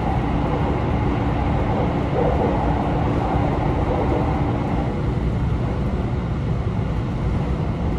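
An electric commuter train rumbles along the track at speed, heard from inside the carriage.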